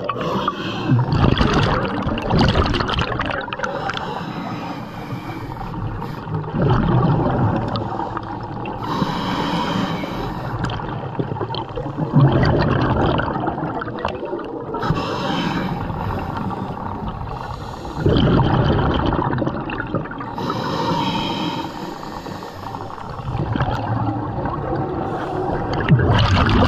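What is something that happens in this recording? A diver breathes in through a regulator with a hissing draw.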